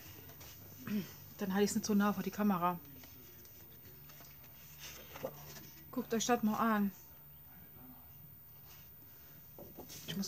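Sheets of paper rustle and slide against each other.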